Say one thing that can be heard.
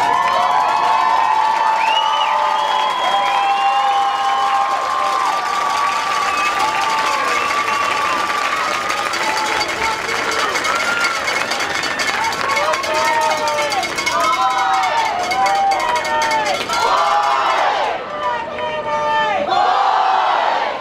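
A marching band plays brass music loudly outdoors.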